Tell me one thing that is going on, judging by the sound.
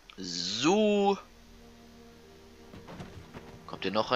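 A heavy body thumps into a wooden crate.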